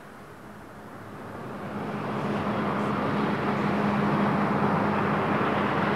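A motorboat engine roars as the boat speeds across water.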